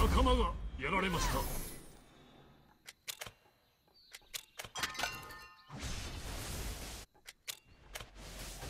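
Fighting effects from a video game ring out in short, sharp bursts.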